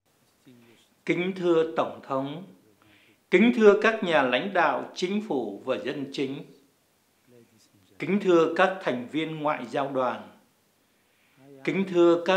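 A man speaks steadily and clearly through a microphone.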